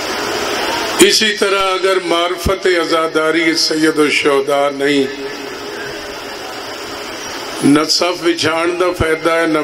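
A middle-aged man speaks passionately into a microphone over loudspeakers.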